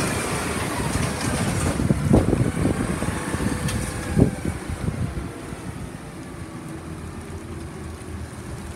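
A garbage truck engine rumbles close by as the truck drives past.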